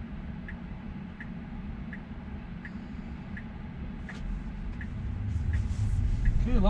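A car's tyres rumble steadily on the road from inside the cabin, growing louder as it speeds up.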